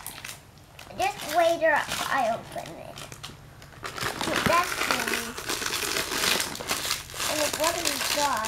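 A young girl talks nearby.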